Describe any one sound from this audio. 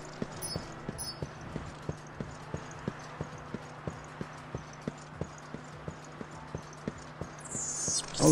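Footsteps run quickly over dry ground.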